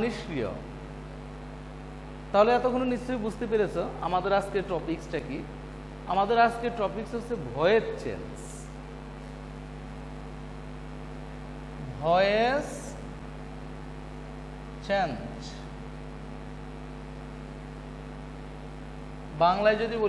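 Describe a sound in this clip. A man speaks calmly into a clip-on microphone, explaining in short phrases.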